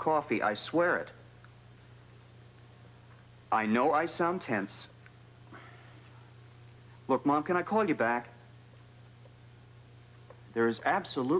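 A young man speaks calmly into a telephone, close by, in short bursts with pauses.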